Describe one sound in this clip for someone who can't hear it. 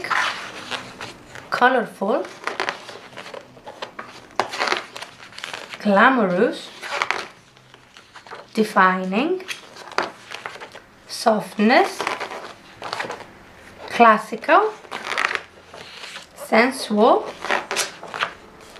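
Glossy magazine pages rustle and flap as a hand turns them.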